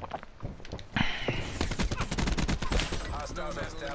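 Rapid gunfire rings out in a quick burst.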